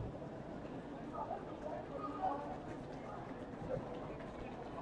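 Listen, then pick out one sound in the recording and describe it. Young women talk to each other nearby.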